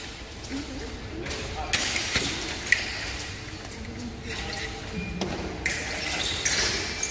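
Fencers' shoes squeak and thud on the floor.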